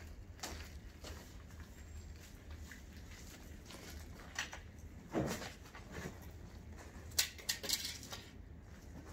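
A pruning tool cuts through plant stems with sharp snaps and cracks.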